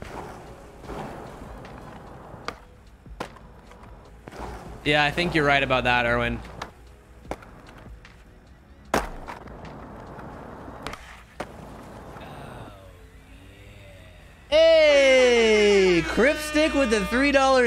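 Skateboard wheels roll on concrete.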